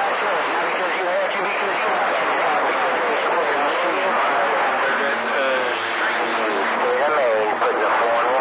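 A radio receiver plays a crackly, narrow-sounding transmission.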